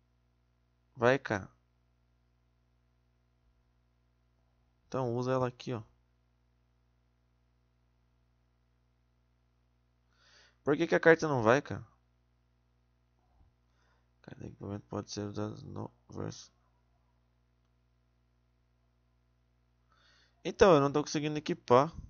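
A young man speaks up close into a microphone in short, animated bursts.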